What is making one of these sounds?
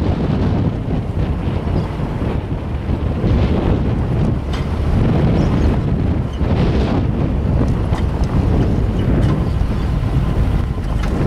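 Wind buffets loudly and steadily outdoors.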